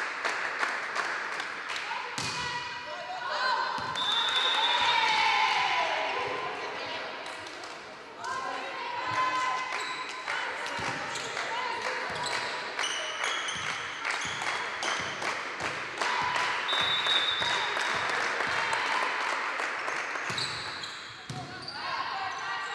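A volleyball is struck with sharp slaps.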